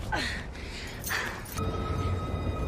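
A young woman laughs loudly and wildly.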